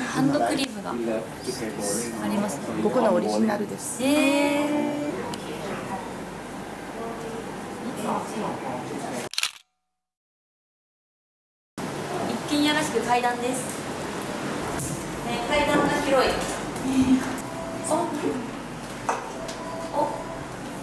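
Young women talk and laugh with animation close by.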